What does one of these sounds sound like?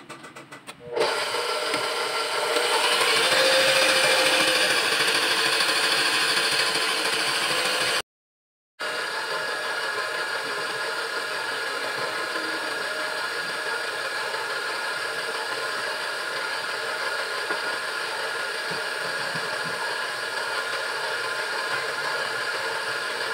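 A stand mixer motor whirs steadily.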